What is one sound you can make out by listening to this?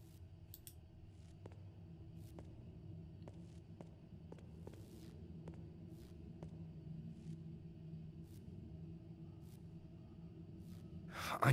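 Footsteps tap slowly on a stone floor in an echoing corridor.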